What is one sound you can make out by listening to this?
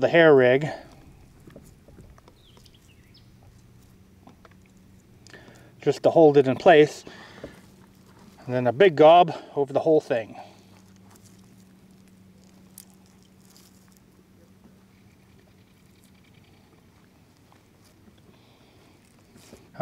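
Hands squeeze and squish wet, crumbly bait.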